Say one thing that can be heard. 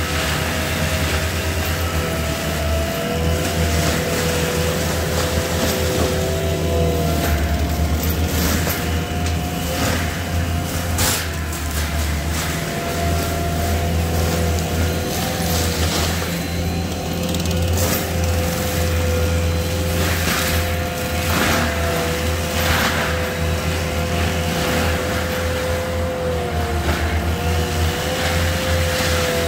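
A mulcher head grinds and crackles through brush.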